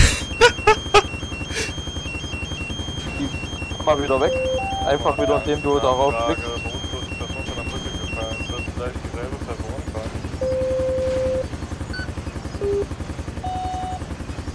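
A helicopter's rotor thumps rapidly and steadily close by.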